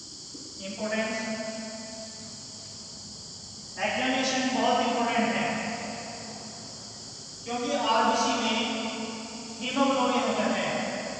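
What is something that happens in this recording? A man speaks calmly and at length, as if explaining.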